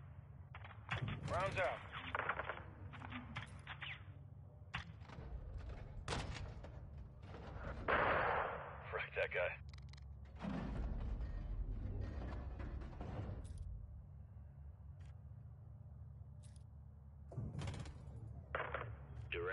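Heavy explosions boom one after another.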